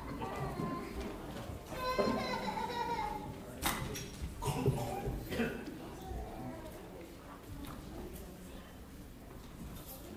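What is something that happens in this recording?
Several people talk casually at a distance in a room with some echo.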